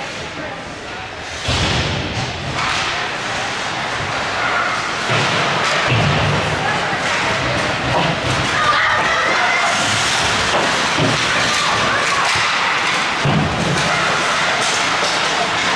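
Hockey sticks clack against the ice and the puck.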